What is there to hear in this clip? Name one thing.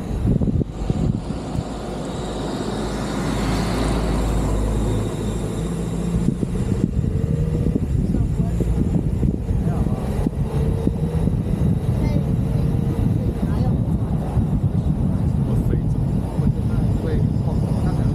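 Wind rushes past an open car as it drives along.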